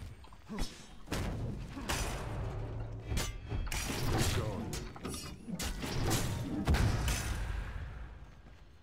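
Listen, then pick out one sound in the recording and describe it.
Sword strikes whoosh and thud in quick bursts.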